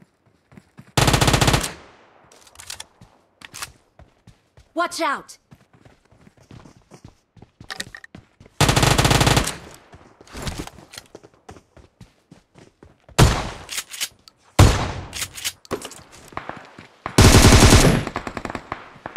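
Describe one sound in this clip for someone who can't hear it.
Rapid automatic gunfire rattles in short bursts.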